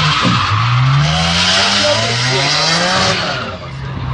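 Tyres screech loudly as cars slide, then fade.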